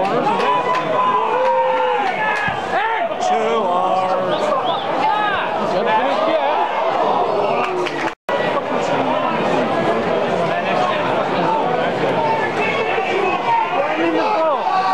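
A large crowd of fans sings and chants loudly, close by and all around.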